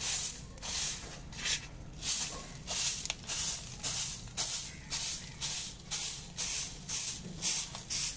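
A straw broom sweeps across a concrete floor in quick, rhythmic swishes.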